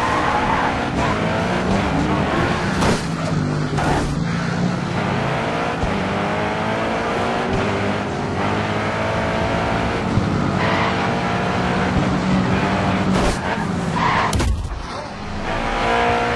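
A race car engine roars at high revs, rising in pitch as it speeds up and dropping at each gear change.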